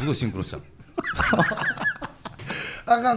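A man laughs loudly into a microphone.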